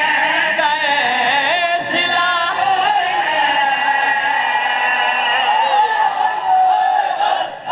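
A young man sings a lament loudly through a microphone, with a strong echo.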